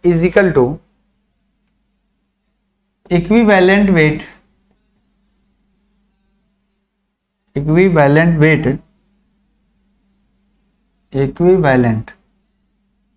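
A man speaks through a microphone in short bursts with pauses.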